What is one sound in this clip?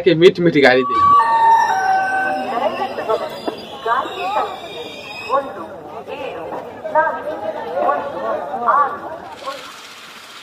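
A crowd of people murmurs and talks.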